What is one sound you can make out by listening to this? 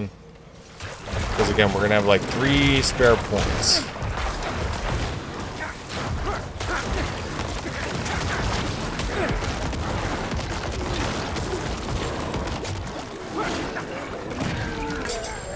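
Game combat clashes and explosions boom steadily.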